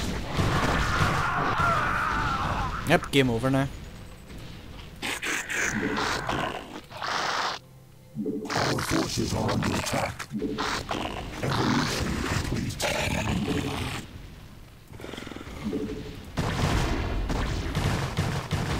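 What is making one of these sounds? Explosions boom during a battle.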